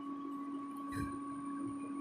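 A metal spoon clinks against a ceramic plate.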